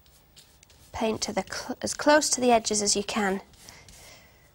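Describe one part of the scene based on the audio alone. A young woman speaks briefly and cheerfully, close by.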